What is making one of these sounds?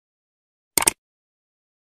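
A short sharp click sounds.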